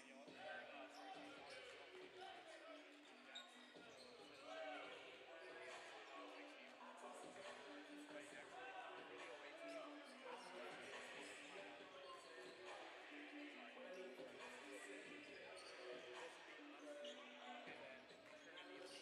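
Basketballs bounce on a hard floor in a large echoing hall.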